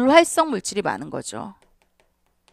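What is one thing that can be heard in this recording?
A woman speaks calmly and clearly into a microphone, as if teaching.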